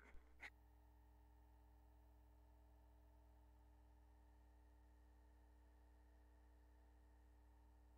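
A turntable hums steadily as it spins.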